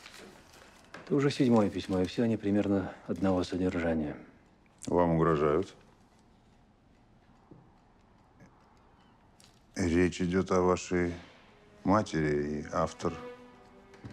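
A man speaks in a low, calm voice nearby.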